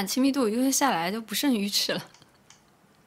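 A young woman speaks brightly and close into a microphone.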